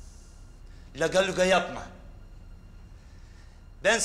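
A man answers nearby, sharply and tensely.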